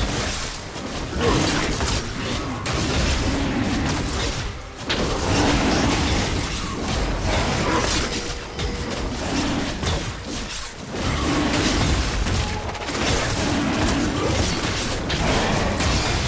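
Magic attacks whoosh and crackle in bursts over a deep rumbling.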